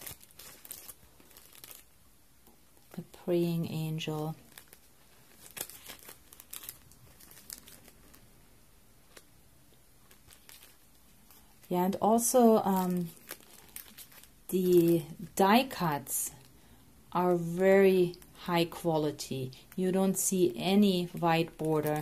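Plastic packets crinkle and rustle in hands.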